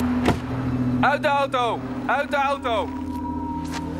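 A police siren gives two short falling whoops nearby.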